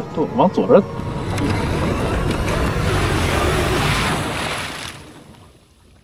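A vehicle engine roars as it drives through water.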